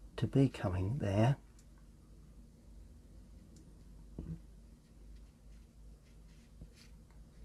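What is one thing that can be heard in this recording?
A brush softly brushes across paper.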